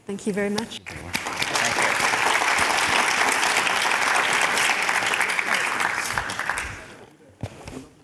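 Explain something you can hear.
An audience applauds loudly, then the clapping fades.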